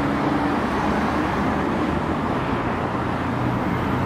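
Car engines hum as vehicles drive through a crossing.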